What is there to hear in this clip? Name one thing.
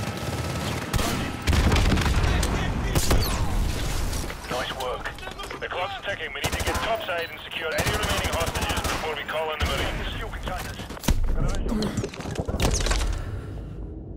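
Rifle gunfire bursts loudly in rapid shots.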